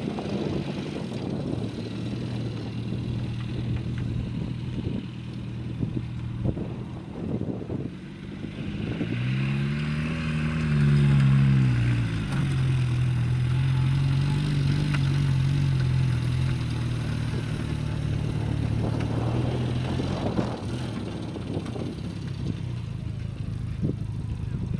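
Tyres rumble and bump over rough ground.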